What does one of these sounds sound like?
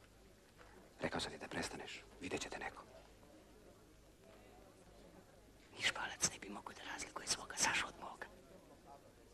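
A young man speaks in a low voice up close.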